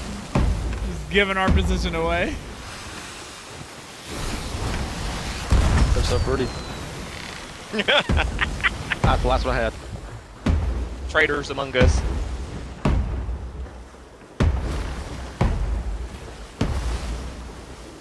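Fireworks pop and crackle.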